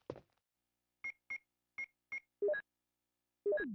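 Short electronic beeps chirp as menu choices are made.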